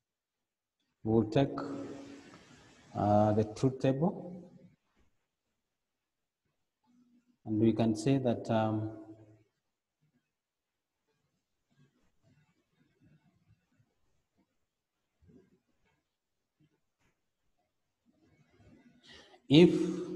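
A man lectures calmly into a microphone, pausing between phrases.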